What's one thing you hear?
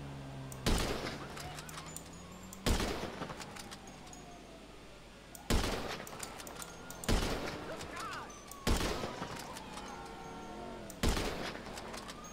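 A sniper rifle fires loud single shots that echo.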